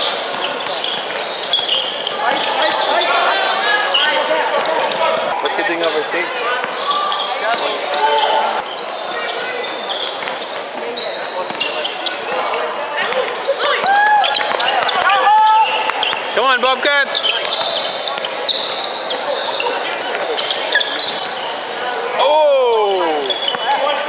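Players and spectators shout and call out in a large echoing hall.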